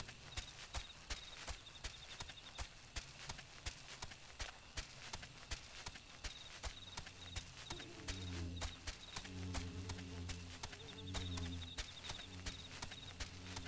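Footsteps pad quickly and steadily over soft ground.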